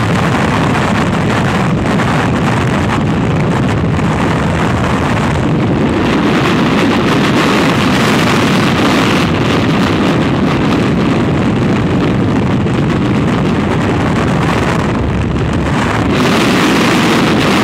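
Strong wind roars and buffets loudly past the microphone.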